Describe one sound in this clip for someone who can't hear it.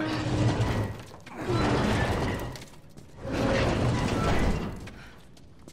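A man grunts with effort.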